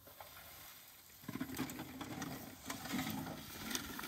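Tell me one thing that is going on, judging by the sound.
Apples thud and rattle into a metal bucket.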